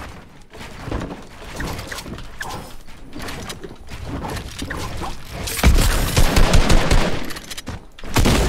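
Video game building pieces clatter and thud rapidly.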